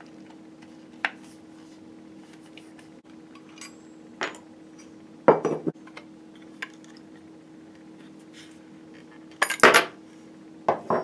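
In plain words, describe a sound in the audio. A metal part clicks and taps against wood.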